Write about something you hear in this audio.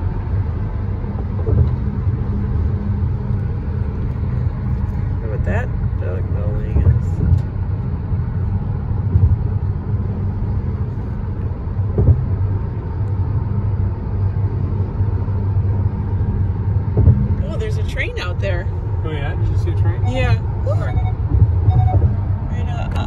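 A car's engine and tyres hum steadily on a highway, heard from inside the car.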